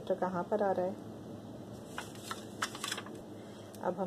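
A plastic sheet crinkles and rustles under a hand.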